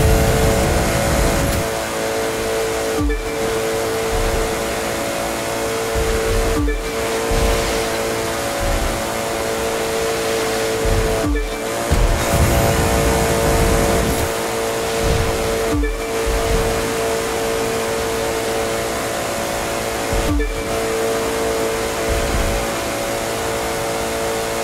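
Tyres hiss over a wet road.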